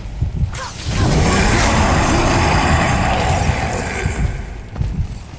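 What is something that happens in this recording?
A heavy hammer slams down with a deep, booming crash.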